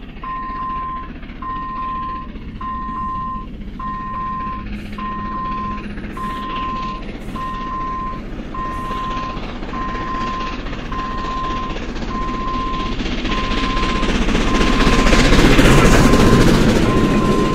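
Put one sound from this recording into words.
A steam locomotive chugs steadily closer and roars past.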